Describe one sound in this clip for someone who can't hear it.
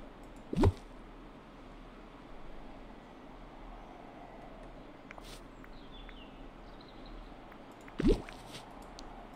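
Soft whooshes and light clicks of a game menu sound.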